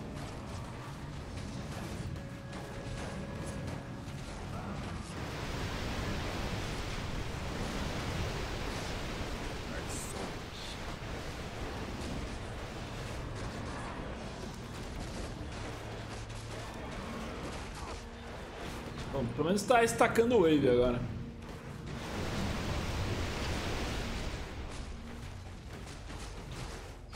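Game battle sounds of spells and clashing weapons play throughout.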